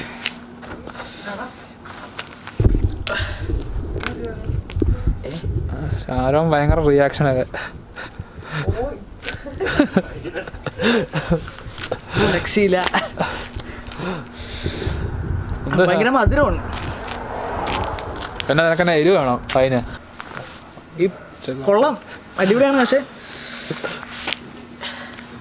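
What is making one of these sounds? A young man laughs close by.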